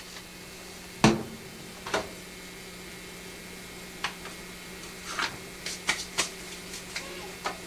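Plastic parts of a copier click and knock as hands work at a tray.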